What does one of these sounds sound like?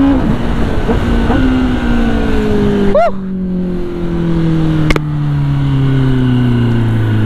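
A motorcycle engine winds down as the bike slows.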